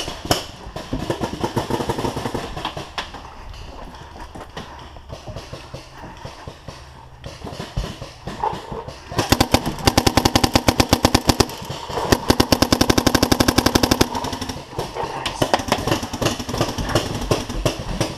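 Footsteps run on a wooden floor.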